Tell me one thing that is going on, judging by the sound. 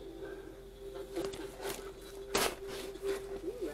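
A stack of books is shuffled and bumped around.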